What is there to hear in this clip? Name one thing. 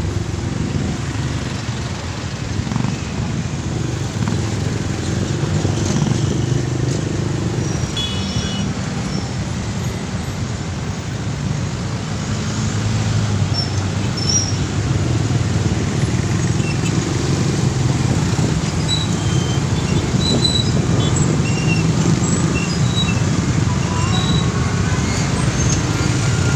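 Motorcycle engines idle and rumble close by in heavy traffic.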